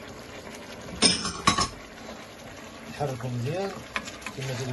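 A wooden spoon knocks and scrapes against a pot.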